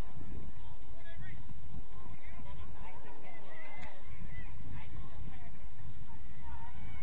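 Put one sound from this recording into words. Young women shout to each other in the distance.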